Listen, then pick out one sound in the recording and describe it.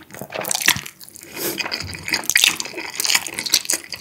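A young man slurps noodles up close.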